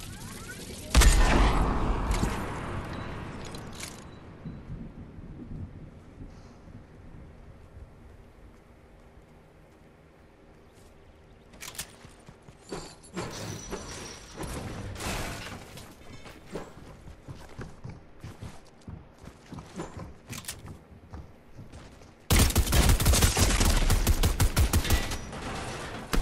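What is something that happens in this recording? Gunfire cracks in a game.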